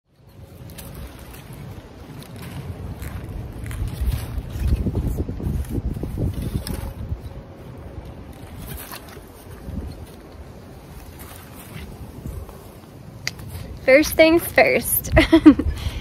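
A flag flaps and rustles in the wind.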